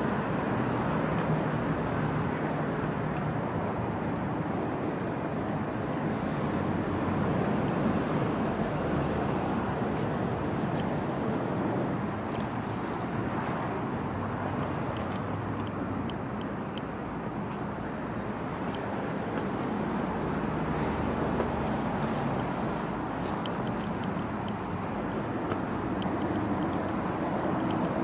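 A plastic seat shell scrapes and rocks on a concrete sidewalk.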